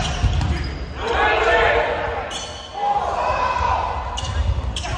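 A crowd of young men shouts and cheers in a large echoing gym.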